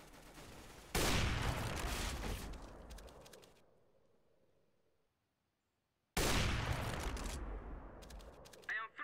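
A sniper rifle fires loud booming shots that echo and fade.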